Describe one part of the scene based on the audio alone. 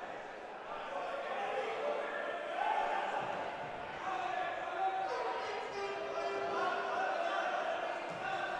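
Men shout to each other in an echoing indoor hall.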